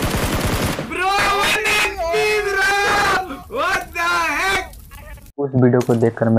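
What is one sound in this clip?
A young man talks excitedly into a microphone.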